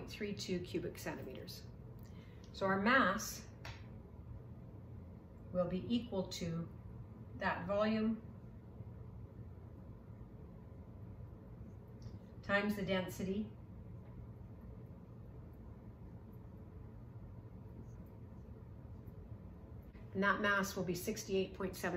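A middle-aged woman speaks calmly and clearly, close to a microphone, in short phrases with pauses.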